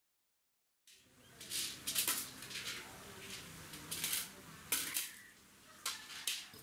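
Metal plates clink on a hard floor.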